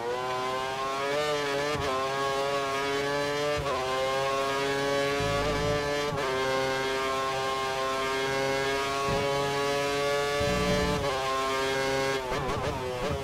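A racing car engine whines at high revs, rising in pitch and dropping sharply with each gear change.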